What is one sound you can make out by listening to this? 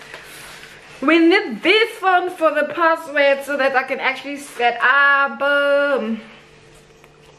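A young woman speaks close up, cheerful and animated.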